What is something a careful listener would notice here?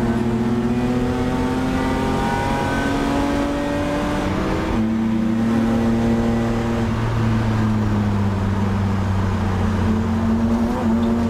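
A race car engine roars loudly inside the cabin, revving up and dropping as the gears change.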